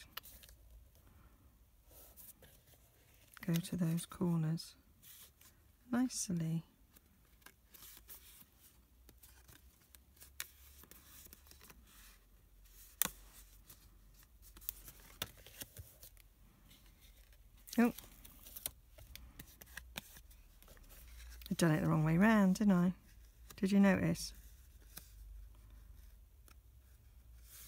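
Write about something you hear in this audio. Stiff card rustles and creases as it is folded by hand.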